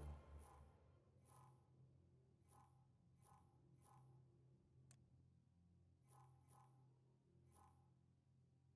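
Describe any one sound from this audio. Soft electronic clicks beep as a menu is scrolled.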